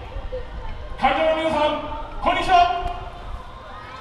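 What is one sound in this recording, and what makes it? A crowd of people calls out in the distance.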